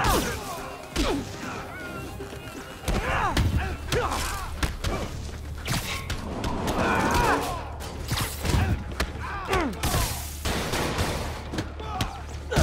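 Punches and kicks thud sharply in a fast fight.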